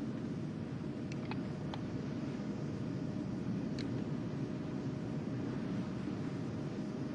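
An aircraft cabin hums with a steady, low engine drone.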